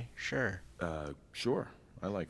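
A man speaks calmly and briefly.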